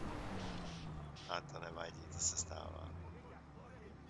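A man whispers urgently nearby.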